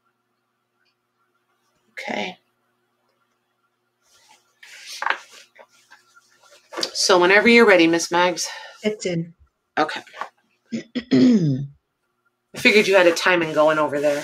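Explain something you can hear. Cloth rustles and swishes as it is handled and spread out.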